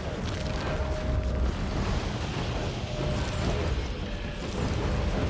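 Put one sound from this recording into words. Weapons clash and spells burst in a fast, noisy fight.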